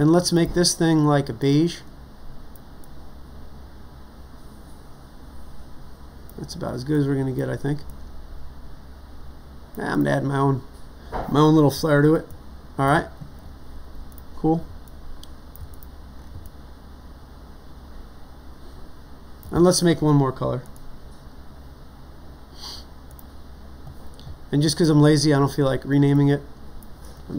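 An older man speaks calmly into a close microphone, in short phrases with pauses.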